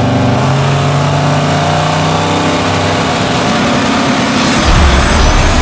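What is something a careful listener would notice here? Two race car engines idle and rev loudly.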